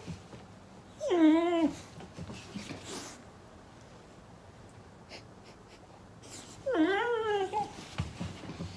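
A dog howls in long, wavering cries.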